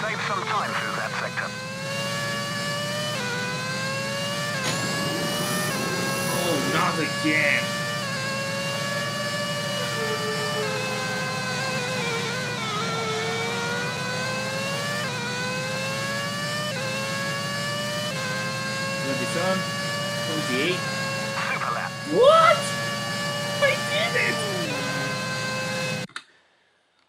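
A racing car engine whines loudly, rising and falling in pitch as it shifts gears.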